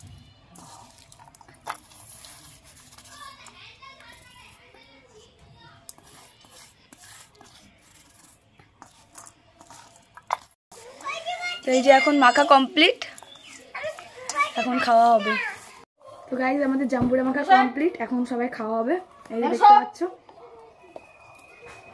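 Hands squish and rustle through shredded food in a bowl.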